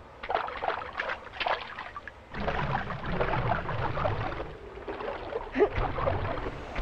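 Footsteps splash through shallow water at a running pace.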